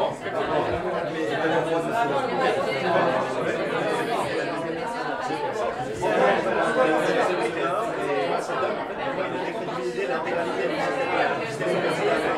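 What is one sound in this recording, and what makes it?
A crowd of men and women chatter all around in a busy room.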